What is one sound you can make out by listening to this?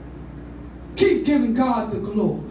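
A woman sings loudly through a microphone and loudspeakers.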